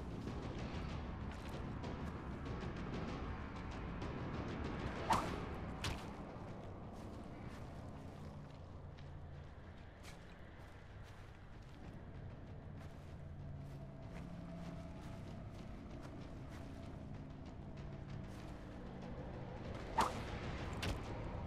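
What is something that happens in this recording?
A climber's hands grip and scrape against rock.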